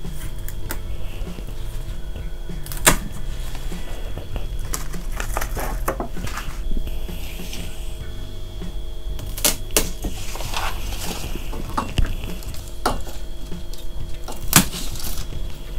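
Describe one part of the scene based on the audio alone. Pruning shears snip through plant stems with sharp clicks.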